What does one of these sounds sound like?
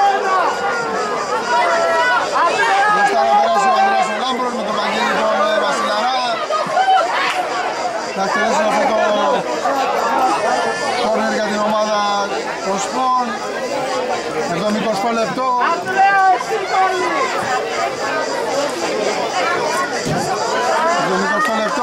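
Men shout to each other across an outdoor field.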